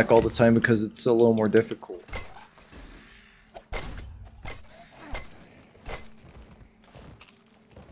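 A blade hacks into flesh with heavy thuds.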